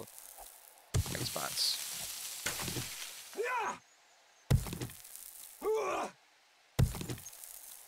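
A stone axe strikes rock with sharp, heavy knocks.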